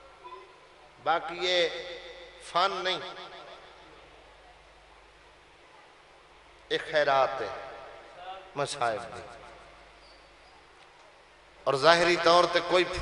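A man recites loudly and with emotion through a microphone, in bursts with pauses, echoing in a large space.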